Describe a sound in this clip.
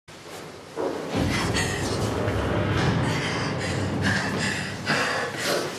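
Bedding rustles as a woman struggles on a bed.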